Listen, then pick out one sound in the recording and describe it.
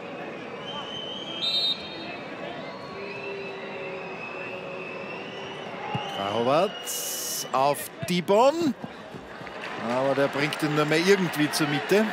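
A stadium crowd chants and roars in the open air.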